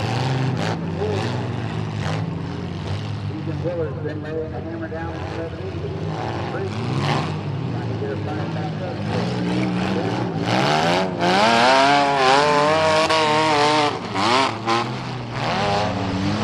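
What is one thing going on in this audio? Car engines rev and roar loudly outdoors.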